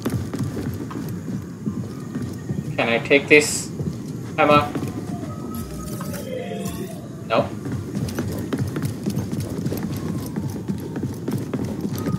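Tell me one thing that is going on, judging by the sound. Footsteps thud quickly across wooden boards.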